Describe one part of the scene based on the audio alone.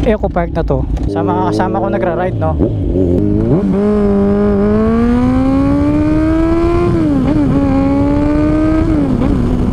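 A motorcycle engine revs hard and climbs in pitch as it speeds up through the gears.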